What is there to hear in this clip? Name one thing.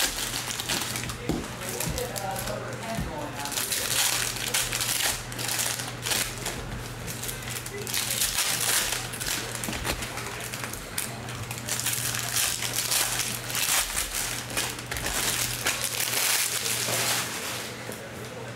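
Foil card wrappers crinkle and rustle close by as they are torn open.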